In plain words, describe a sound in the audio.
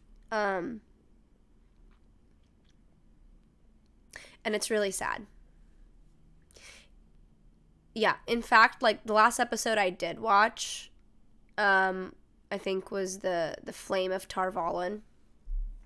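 A young woman speaks softly and closely into a microphone, in short bursts with pauses.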